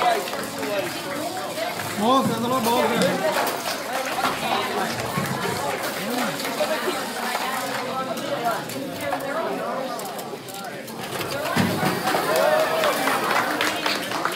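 A crowd of people talks and calls out in a large room.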